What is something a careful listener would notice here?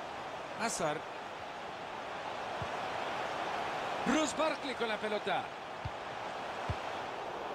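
A stadium crowd murmurs and cheers steadily.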